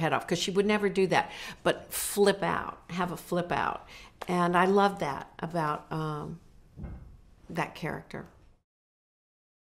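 An older woman speaks with animation, close to a microphone.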